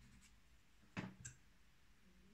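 A metal file is set down with a sharp knock.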